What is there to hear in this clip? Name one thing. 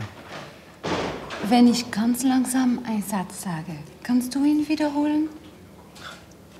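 A young woman speaks gently and warmly nearby.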